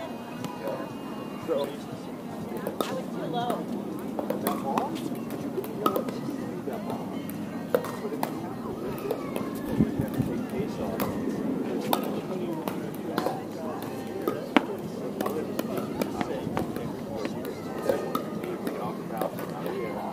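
Paddles strike a plastic ball with sharp pops.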